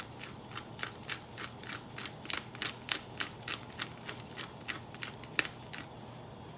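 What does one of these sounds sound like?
A spice shaker rattles with quick, steady shakes.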